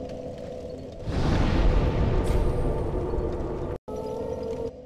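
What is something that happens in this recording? Flames flare up with a loud rushing whoosh.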